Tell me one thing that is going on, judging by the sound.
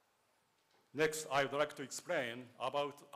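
A man speaks calmly into a microphone over loudspeakers in a large hall.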